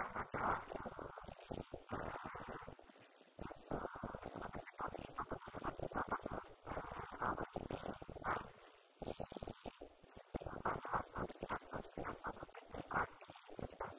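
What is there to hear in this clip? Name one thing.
A woman speaks calmly into a microphone, heard through loudspeakers in a large echoing hall.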